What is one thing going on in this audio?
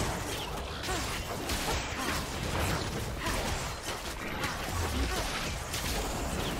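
Magic spells whoosh and crackle as game characters fight.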